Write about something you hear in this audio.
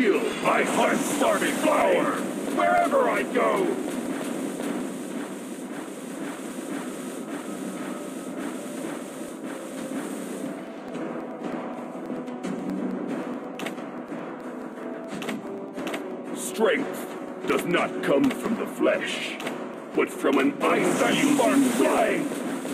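Fiery blasts crackle and whoosh in a battle.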